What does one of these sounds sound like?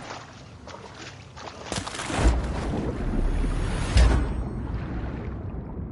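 Water splashes and bubbles around a swimmer.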